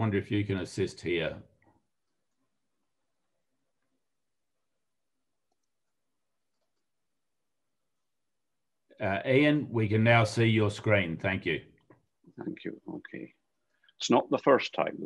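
An elderly man speaks calmly over an online call, with pauses.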